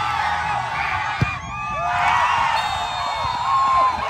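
A football is kicked with a thud.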